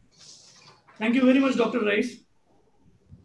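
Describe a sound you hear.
A second man speaks briefly over an online call.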